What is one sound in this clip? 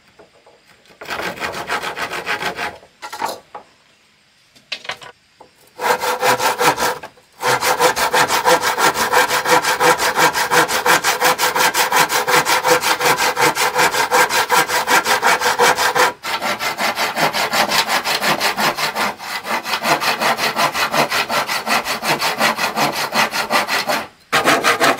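A hand saw rasps back and forth through wood in quick, steady strokes.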